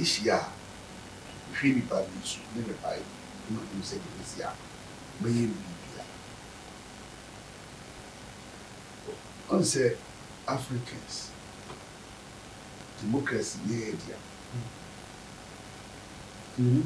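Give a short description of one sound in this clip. An elderly man speaks calmly and with pauses, close to a microphone.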